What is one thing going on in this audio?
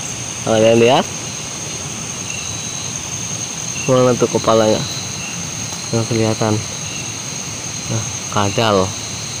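A frog calls with short, rising, croaking bursts.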